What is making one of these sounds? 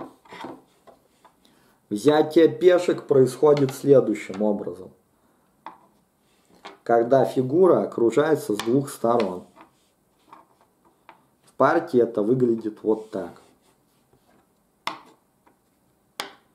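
Wooden game pieces knock softly on a wooden board.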